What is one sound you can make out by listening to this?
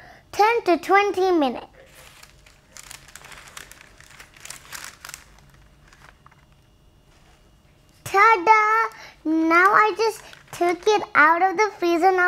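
A young girl speaks brightly and with animation, close to a microphone.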